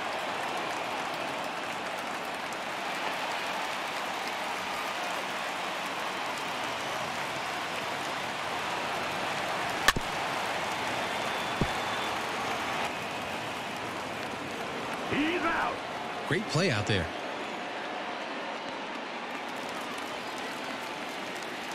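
A crowd murmurs steadily in a large stadium.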